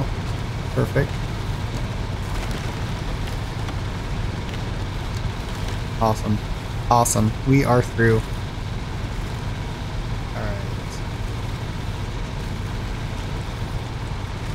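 A truck engine rumbles steadily as it drives through mud.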